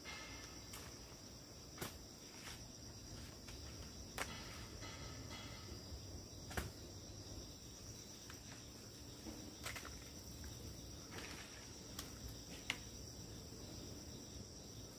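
Leaves rustle on a tree branch being pulled.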